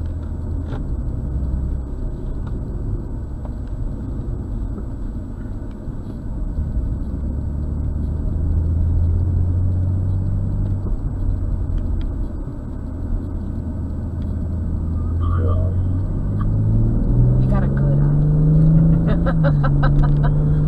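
A car engine hums low inside the car, then revs higher as the car speeds up.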